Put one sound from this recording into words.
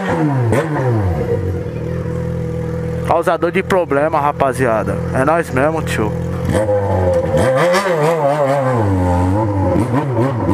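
A motorcycle engine idles steadily, close by.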